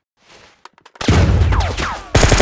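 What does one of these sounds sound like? An explosion booms.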